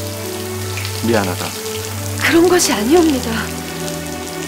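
A young woman speaks in a tearful, pleading voice close by.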